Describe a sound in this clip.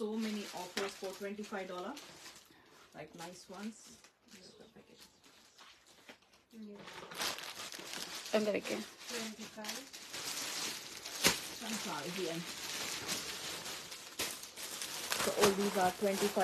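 A middle-aged woman talks calmly and close by.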